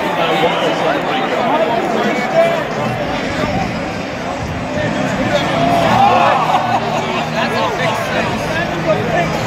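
A large stadium crowd roars and cheers outdoors.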